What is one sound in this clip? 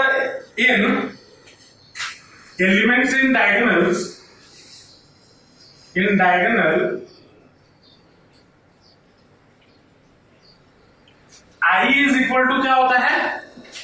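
A man speaks calmly and clearly nearby, explaining in short bursts with pauses.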